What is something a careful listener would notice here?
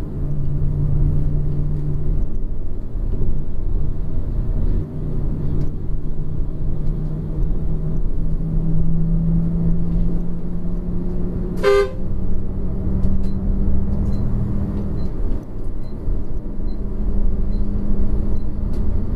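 A bus engine drones steadily, heard from inside the cab.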